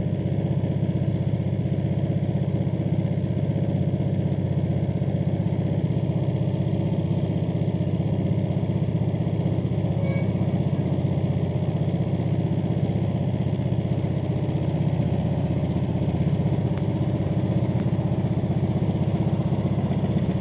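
A small boat's outboard engine chugs steadily close by.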